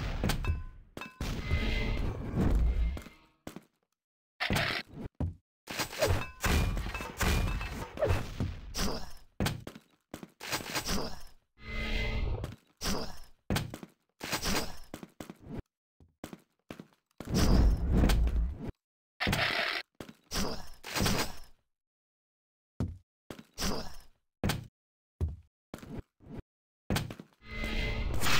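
Game footsteps thud quickly on hard floors.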